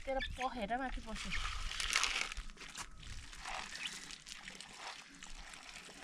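Chicks chirp and peep close by.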